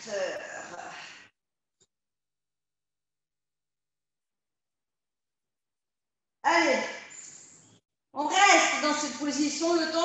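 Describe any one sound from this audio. A woman talks through a microphone with upbeat, instructing speech.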